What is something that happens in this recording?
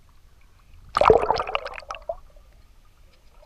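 Water rushes and bubbles underwater.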